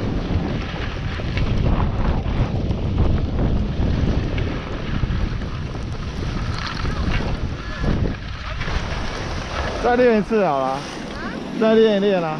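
Skis scrape over snow.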